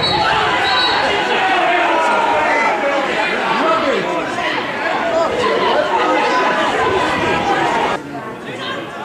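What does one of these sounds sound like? Men shout and argue on a football pitch outdoors.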